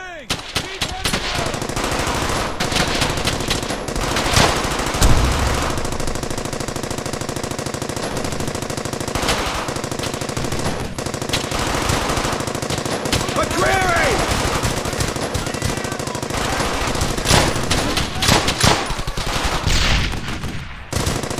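Rifle shots crack repeatedly in bursts.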